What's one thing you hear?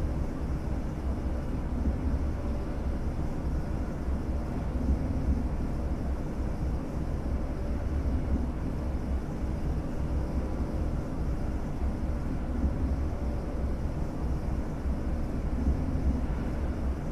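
A train rumbles steadily along the rails at speed.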